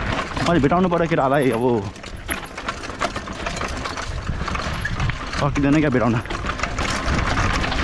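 A bicycle's frame and chain rattle over bumps.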